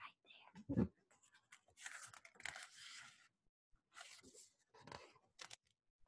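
Paper pages rustle as a book page is turned.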